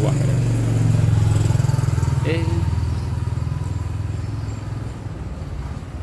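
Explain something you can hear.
A motorbike engine rumbles past close by and fades.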